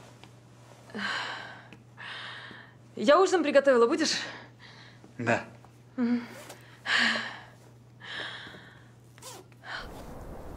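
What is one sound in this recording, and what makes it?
A woman speaks and laughs lightly nearby.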